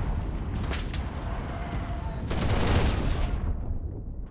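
Explosions boom and rumble loudly nearby.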